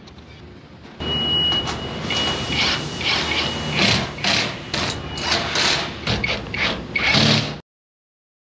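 A cordless drill whirs in short bursts, driving screws into metal.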